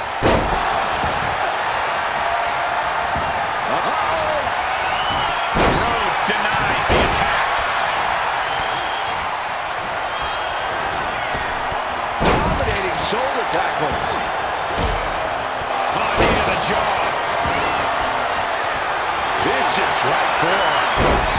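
Bodies slam heavily onto a wrestling ring with loud thuds.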